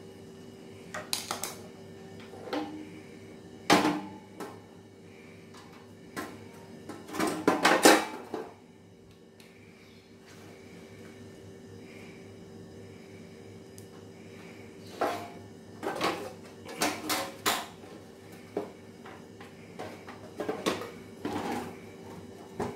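A plastic casing clatters and knocks as it is handled.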